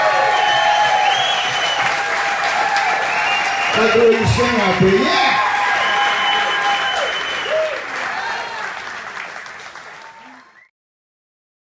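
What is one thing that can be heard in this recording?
Electric guitars ring out over the band.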